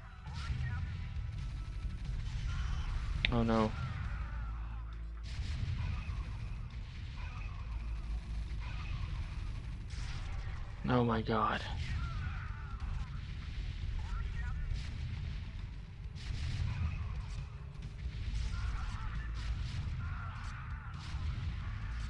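Explosions boom and weapons fire in a rapid, noisy battle.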